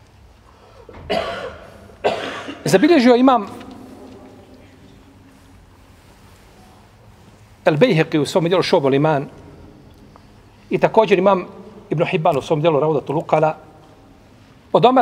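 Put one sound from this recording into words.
A middle-aged man speaks calmly in short phrases into a microphone, with pauses.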